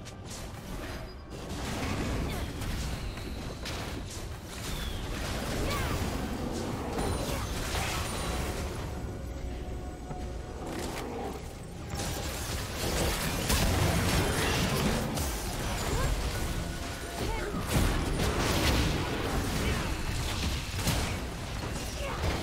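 Spells crackle and whoosh as game fighters clash.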